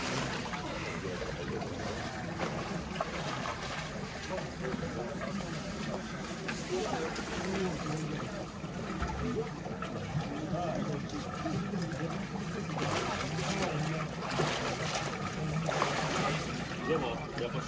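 Water splashes as a woman dips into a cold pool.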